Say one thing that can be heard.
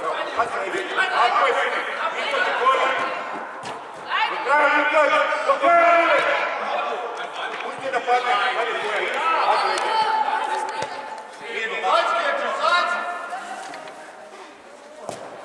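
Children shout to each other in a large echoing hall.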